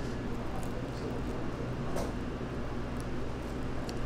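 Crispy fried chicken crackles as hands tear it apart.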